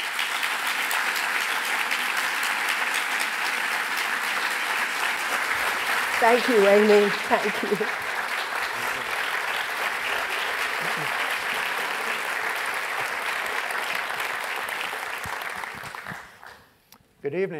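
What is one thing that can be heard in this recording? An audience applauds steadily in a large hall, then the applause fades.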